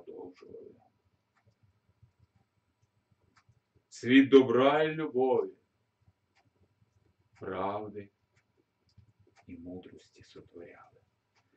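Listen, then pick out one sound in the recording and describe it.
A middle-aged man speaks in a measured, pausing way close by.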